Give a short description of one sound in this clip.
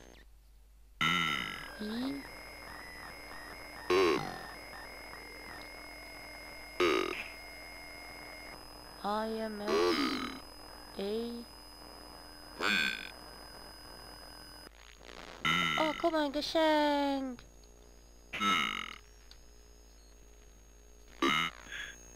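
Electronic game sounds blip, buzz and warble in short bursts.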